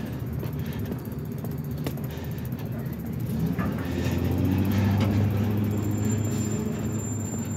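Footsteps tap on a pavement outdoors.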